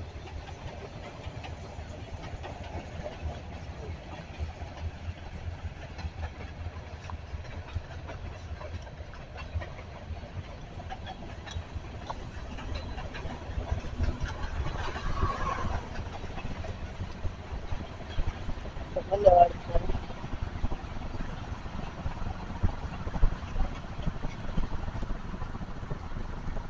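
A car engine hums with steady road noise as the car drives along.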